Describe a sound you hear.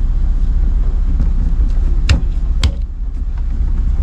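A steering wheel knocks and rattles as a hand tugs at it.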